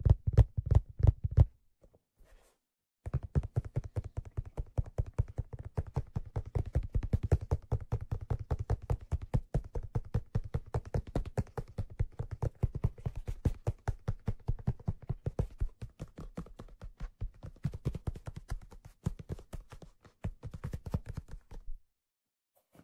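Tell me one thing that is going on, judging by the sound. Fingers tap rapidly and softly on a small drum close up.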